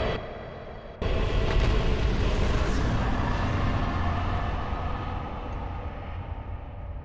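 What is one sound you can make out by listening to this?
A deep, booming tone sounds suddenly and slowly fades.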